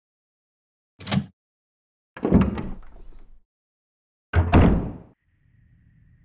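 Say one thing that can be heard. A heavy wooden door creaks open and thuds.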